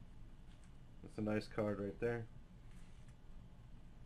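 Trading cards rustle and slide softly between fingers.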